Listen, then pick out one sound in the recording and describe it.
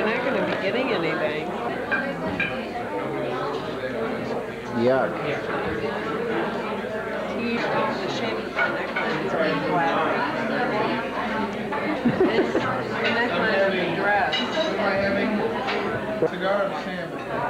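Many people chatter and laugh in a busy room.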